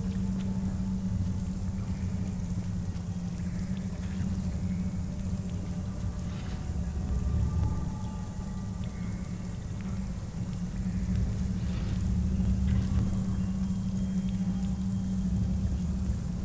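Footsteps tap on stone as a woman runs.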